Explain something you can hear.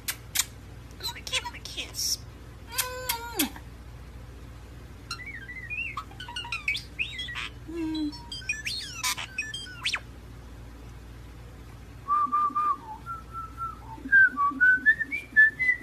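A starling whistles and chirps close by.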